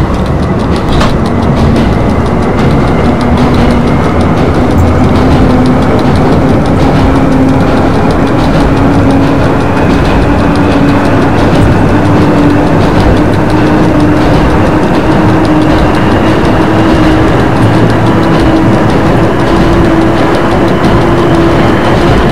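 An electric train motor hums, slowly rising in pitch as the train speeds up.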